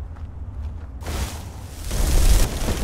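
Magic spells crackle and hiss loudly.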